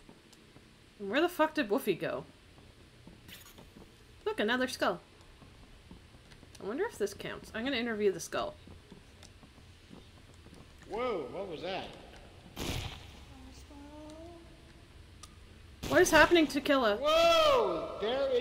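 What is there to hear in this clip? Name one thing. A young woman talks animatedly into a close microphone, in short bursts with rising and falling pitch.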